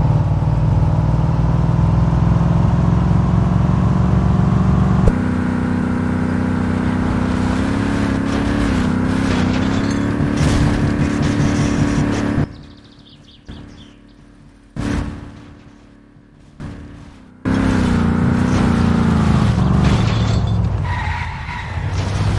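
A car engine roars steadily and revs.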